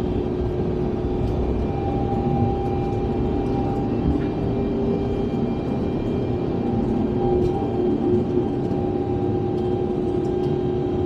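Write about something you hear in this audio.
A jet engine roars steadily from inside an airliner cabin.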